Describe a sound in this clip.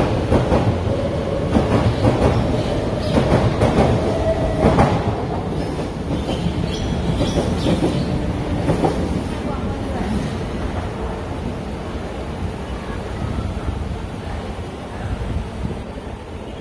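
A train rumbles and squeals along a track nearby.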